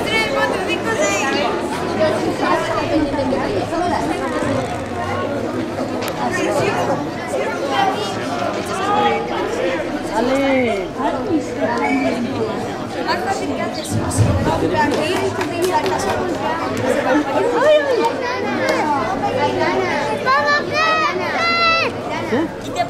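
A crowd of young men and women shout and chatter outdoors.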